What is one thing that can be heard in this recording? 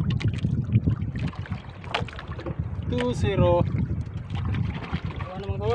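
Waves slap against a small boat's hull.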